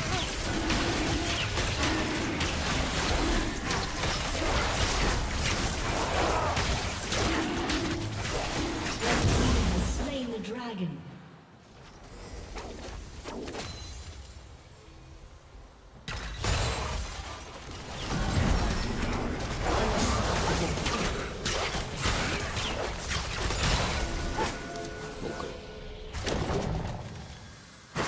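Game spell effects whoosh and crash during a fight.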